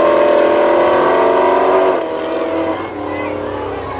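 Race car engines roar loudly as the cars speed away.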